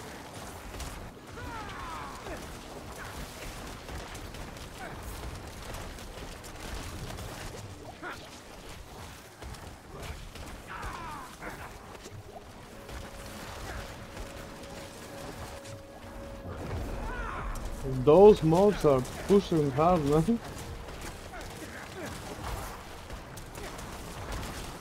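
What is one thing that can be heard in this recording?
Fantasy game spell effects whoosh and crackle throughout.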